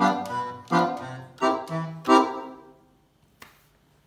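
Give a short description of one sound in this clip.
An accordion plays loud chords.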